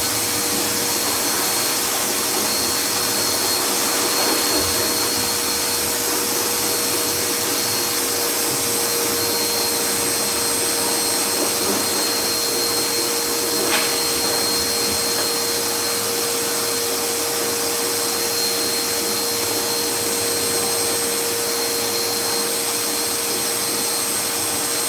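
A powerful blow dryer roars steadily up close.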